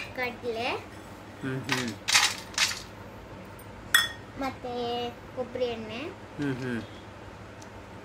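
A small metal cup clinks against a steel bowl.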